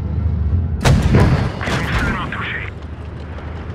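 A shell explodes with a blast.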